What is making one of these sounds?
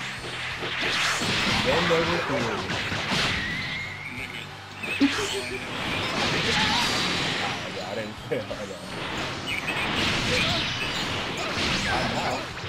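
Punches and kicks land with sharp impacts.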